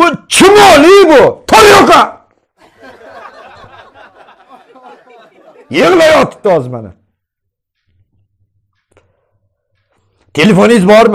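A young man speaks loudly and animatedly into a close microphone.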